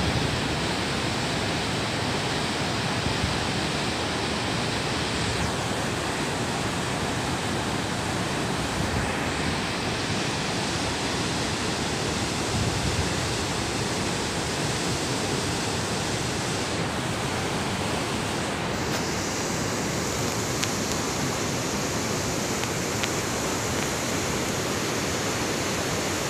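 A river roars over boulders.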